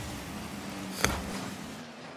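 A ball is struck with a sharp thump.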